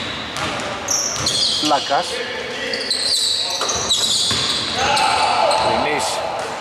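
Sneakers squeak sharply on a hard court in an echoing hall.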